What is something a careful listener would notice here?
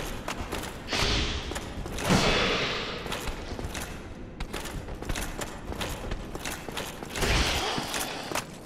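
Swords clash with metal ringing blows.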